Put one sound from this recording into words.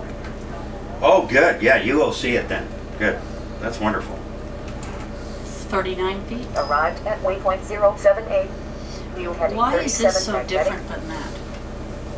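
A man speaks calmly into a headset microphone, close by.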